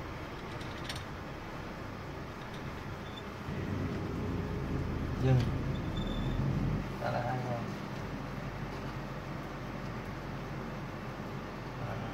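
A vehicle engine hums steadily from inside the cabin.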